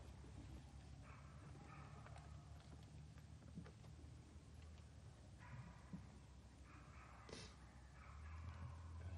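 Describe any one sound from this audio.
A keyboard plays soft, gentle music.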